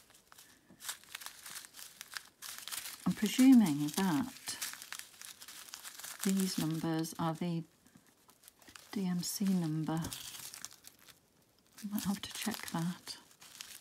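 Small plastic beads rattle inside a bag.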